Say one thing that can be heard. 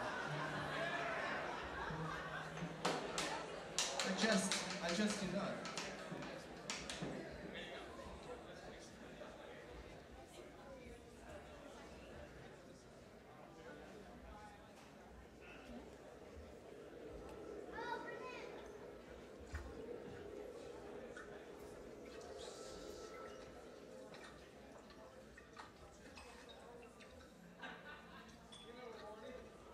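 An orchestra and band play music in a large echoing hall.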